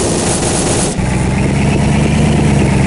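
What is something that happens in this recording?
A vehicle's engine rumbles steadily.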